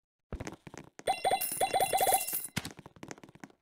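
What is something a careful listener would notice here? Game sound effects chime and whoosh as menus open.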